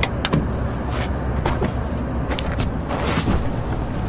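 A car door opens.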